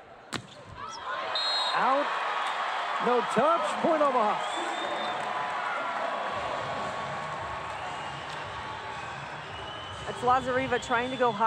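A large crowd cheers and claps loudly in a big echoing arena.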